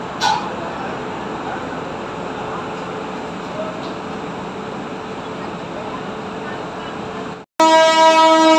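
A passenger train rolls past with a steady rumble.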